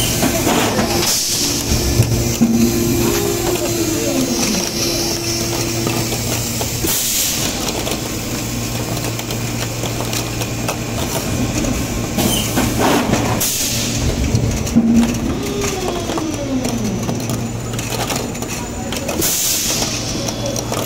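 A machine clamps shut with a sharp hiss of air.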